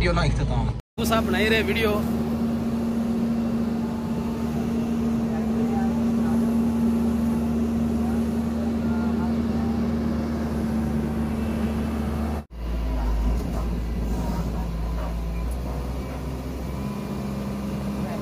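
An excavator engine idles with a steady hum.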